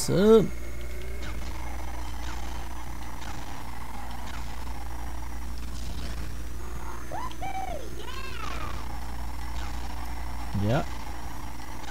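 Boost bursts whoosh and swoop in pitch now and then.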